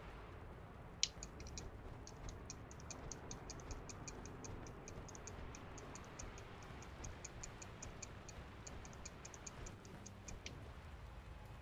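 A rapid ticking clicks on and off.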